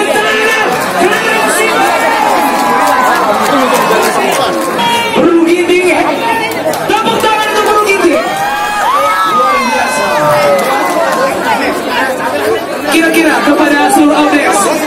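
A large crowd of men and women chatters and calls out loudly close by.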